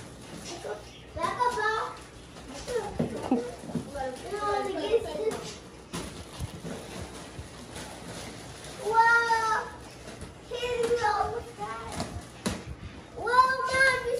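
Plastic wrapping crinkles and rustles as children unwrap a toy car.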